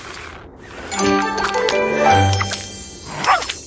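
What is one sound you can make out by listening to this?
A bright, cheerful jingle of rising chimes plays.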